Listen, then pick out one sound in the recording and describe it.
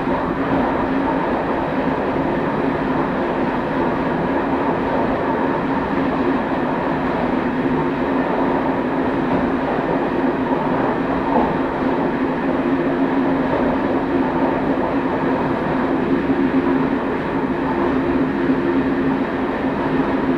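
A train's engine drones steadily.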